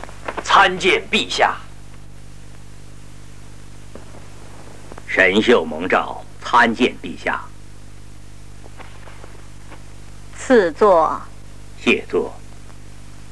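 A man speaks formally and respectfully.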